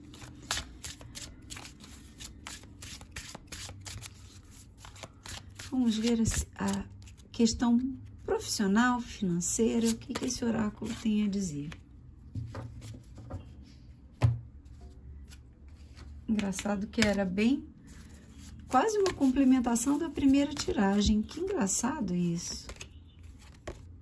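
Cards are shuffled by hand with soft, quick flicks and rustles.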